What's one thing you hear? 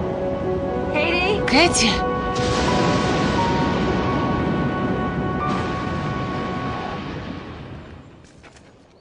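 A woman sings loudly.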